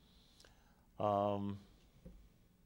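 A middle-aged man speaks a brief word into a microphone.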